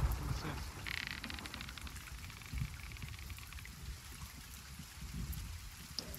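Rough sea waves surge and rumble low.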